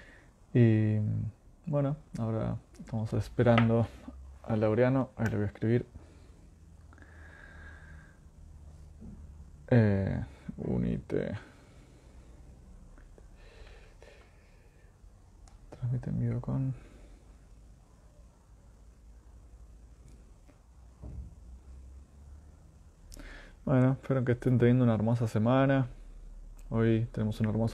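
A young man speaks calmly and close up, with pauses.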